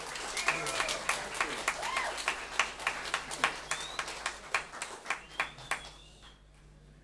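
An acoustic guitar is strummed in a quick, steady rhythm.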